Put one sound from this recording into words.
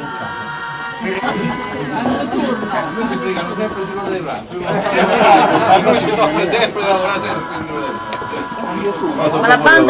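A group of men talk over one another close by.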